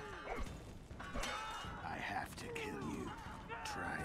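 Swords clash and ring.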